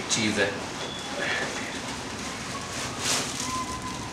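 Paper rustles as a parcel is unwrapped.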